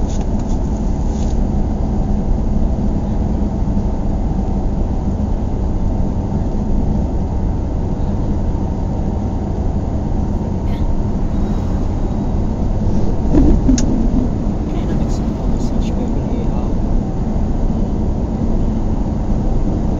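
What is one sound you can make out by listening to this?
A car engine hums steadily from inside the car as it drives slowly through traffic.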